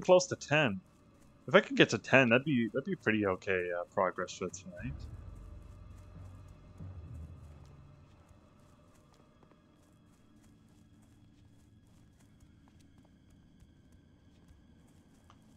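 Footsteps patter on a stone path.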